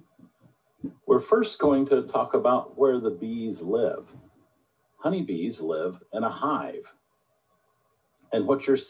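A woman speaks calmly through an online call, as if presenting.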